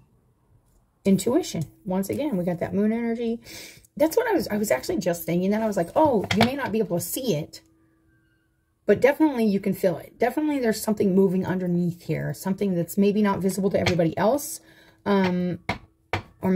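A woman speaks calmly and with animation, close by.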